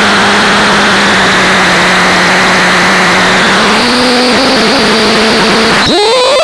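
A noisy electronic drone hums and hisses, shifting in pitch.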